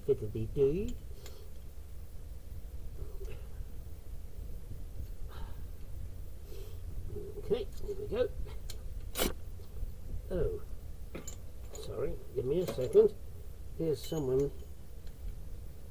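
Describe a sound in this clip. A metal tool clinks and scrapes against car brake parts.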